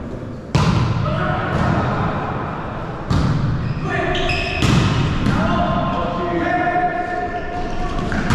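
Young players shout and call out to one another with echo.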